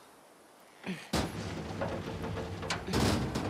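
A heavy metal door creaks and scrapes as it is pushed open.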